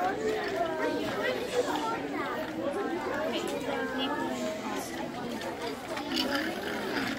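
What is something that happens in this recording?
Plastic toy pieces rattle and clatter.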